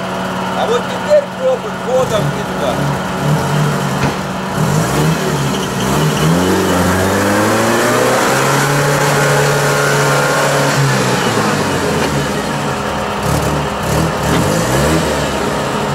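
An off-road vehicle's engine revs hard, rising and falling.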